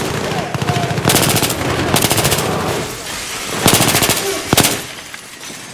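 Rapid gunfire bursts out in loud, fast volleys.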